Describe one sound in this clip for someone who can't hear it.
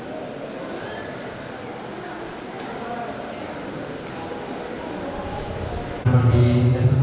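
A young woman speaks calmly into a microphone, heard through loudspeakers.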